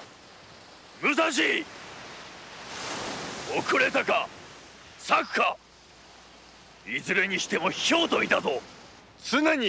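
A young man speaks tensely and firmly.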